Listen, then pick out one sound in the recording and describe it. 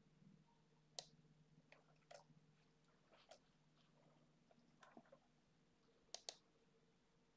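Computer keys click and a mouse clicks now and then, close by.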